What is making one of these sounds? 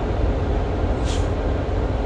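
A switch clicks on a dashboard.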